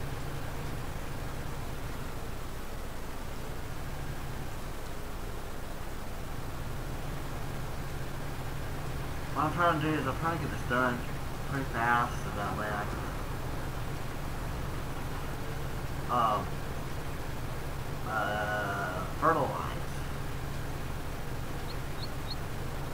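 A tractor engine hums steadily at a low pitch.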